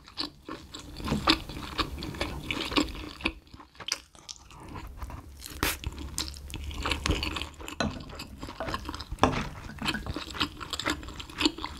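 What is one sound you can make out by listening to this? Chopsticks clink against a glass bowl.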